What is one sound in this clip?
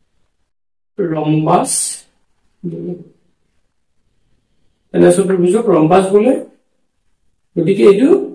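A man speaks calmly and clearly, pausing between phrases.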